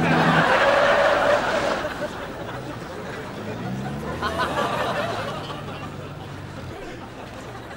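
A small car engine rumbles as the car pulls up and stops.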